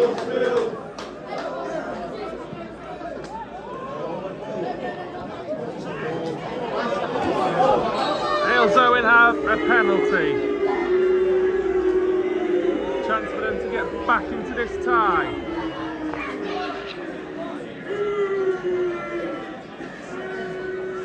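A large crowd of spectators chants and sings loudly outdoors.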